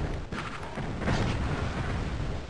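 A magical bolt bursts with a crackling blast.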